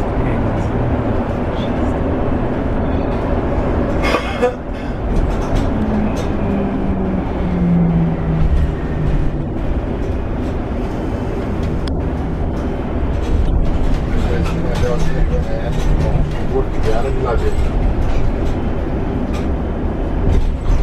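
A bus engine hums and rumbles steadily from inside the cabin.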